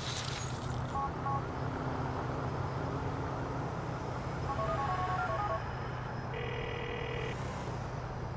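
A phone beeps with short electronic tones.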